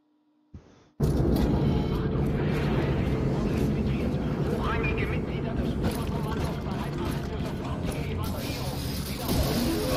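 A low mechanical drone rumbles steadily in a large echoing hall.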